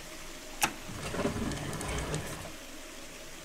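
Metal bars rattle and slide open.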